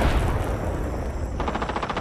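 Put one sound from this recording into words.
A fire crackles and burns.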